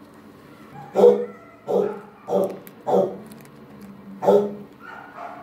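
A dog makes short, close huffing barks.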